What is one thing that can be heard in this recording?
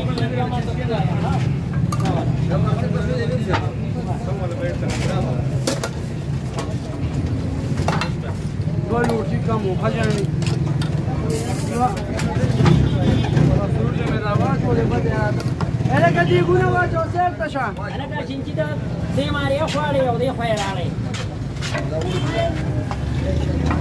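Metal ladles clink and scrape against large pots.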